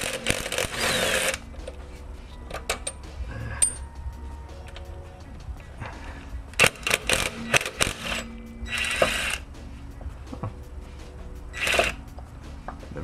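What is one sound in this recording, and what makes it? An impact wrench hammers in short, loud bursts.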